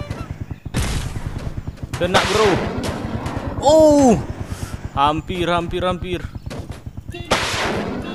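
Rockets explode with loud bursts.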